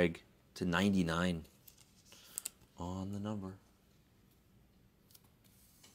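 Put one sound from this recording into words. A plastic sleeve rustles.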